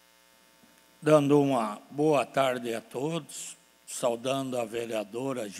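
A middle-aged man speaks firmly into a microphone.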